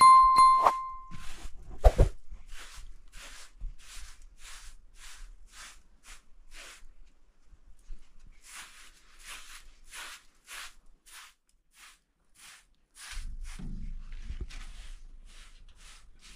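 A broom sweeps a floor in quick, rhythmic strokes.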